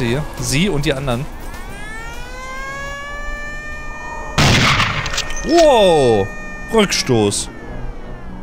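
A man talks into a close microphone, with animation.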